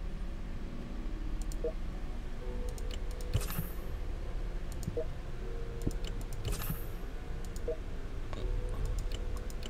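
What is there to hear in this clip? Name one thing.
Soft game interface clicks sound as menus open and change.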